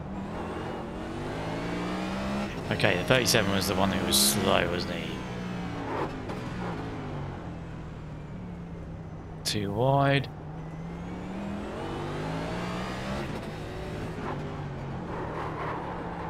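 A race car engine drones steadily, rising and falling in pitch as it shifts.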